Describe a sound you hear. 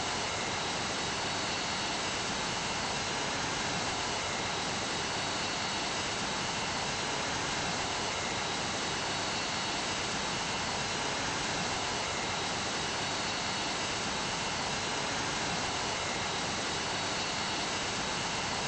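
Jet engines roar steadily as an airliner flies.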